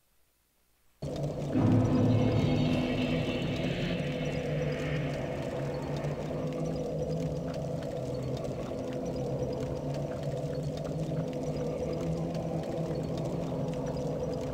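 Lava rumbles low and steadily.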